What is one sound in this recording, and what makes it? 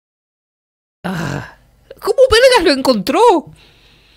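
A young man speaks with animation, close to a microphone.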